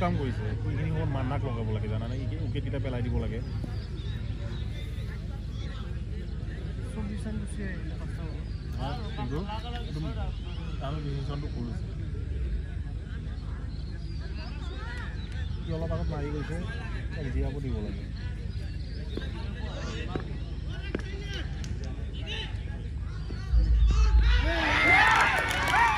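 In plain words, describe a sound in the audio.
Men talk and call out outdoors.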